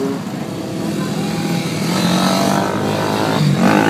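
A dirt bike engine whines as it rides past.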